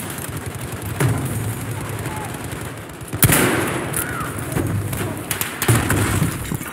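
A rifle fires single loud shots, each with a booming echo.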